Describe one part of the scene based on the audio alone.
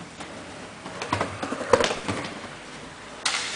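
A skateboarder crashes onto the ground with a loud thud.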